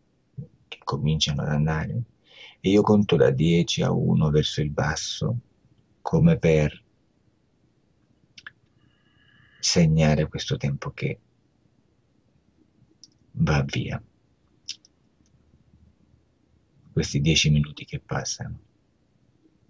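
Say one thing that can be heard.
A middle-aged man speaks calmly through a headset microphone on an online call, in short bursts with pauses.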